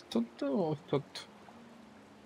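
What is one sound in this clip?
A young man speaks briefly and loudly into a microphone.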